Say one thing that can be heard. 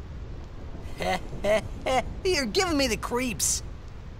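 A young man speaks with unease.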